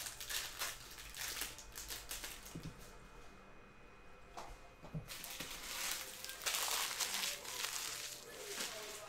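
Plastic wrappers crinkle as hands tear open card packs.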